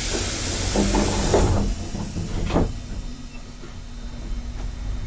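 A train rumbles and rattles slowly along the tracks.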